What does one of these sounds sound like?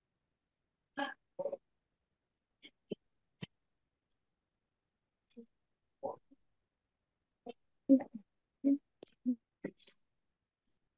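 A young girl speaks softly over an online call.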